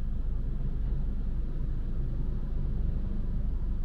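A heavy truck's engine rumbles as it drives past.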